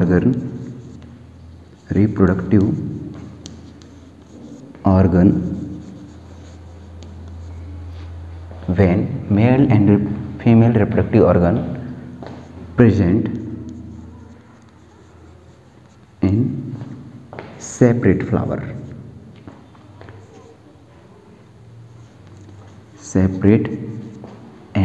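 A young man speaks calmly in an echoing room, pausing often.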